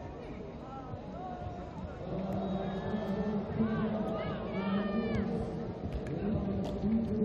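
A large outdoor crowd cheers and shouts, growing louder.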